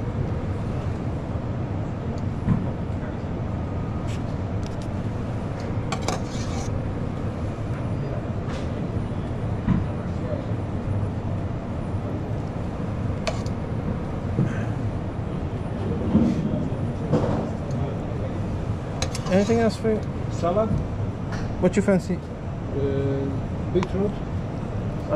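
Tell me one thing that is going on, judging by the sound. A metal spoon clinks and scrapes against a steel pan.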